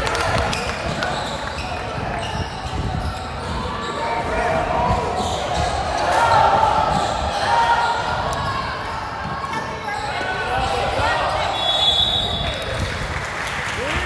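A crowd of young people chatters and calls out in the background.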